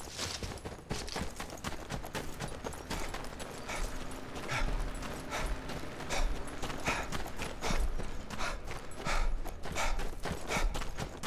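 Footsteps crunch on snow and gravel at a steady walking pace.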